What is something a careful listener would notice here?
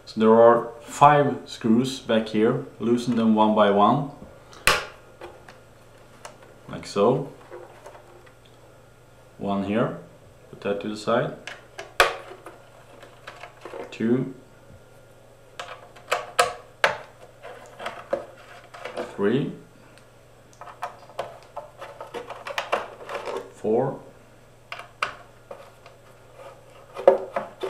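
Small metal parts and a hand tool click and tap against a hard surface.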